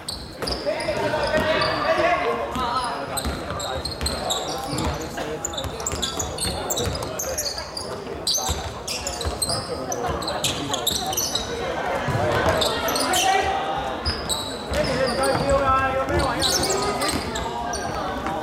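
A basketball bounces on a hardwood court in a large echoing hall.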